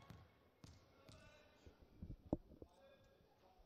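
A volleyball thumps as it bounces on a hard floor in an echoing hall.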